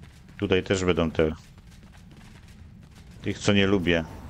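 Footsteps run over a dirt path.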